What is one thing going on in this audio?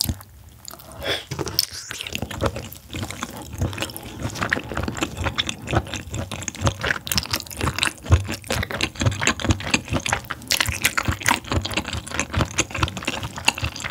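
A young woman chews crunchy seafood wetly and loudly, close to a microphone.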